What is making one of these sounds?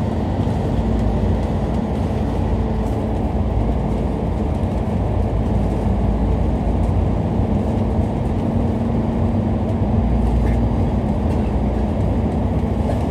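A vehicle's engine rumbles steadily while driving through an echoing tunnel.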